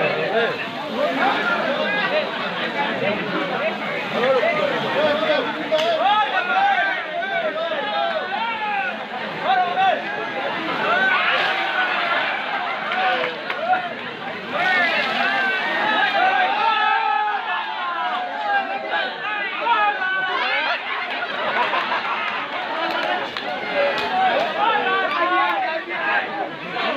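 A large crowd of people talks and shouts excitedly outdoors.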